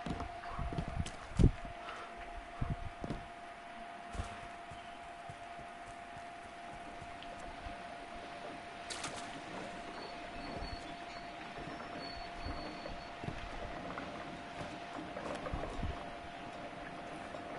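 Footsteps patter quickly on the ground as a figure runs.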